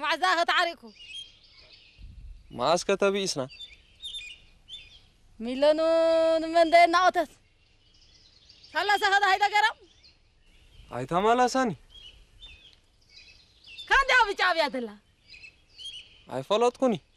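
A man sings loudly in short phrases with pauses between them.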